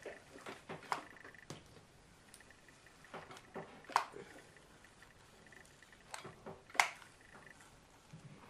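A hair straightener clicks and clacks as it closes on hair.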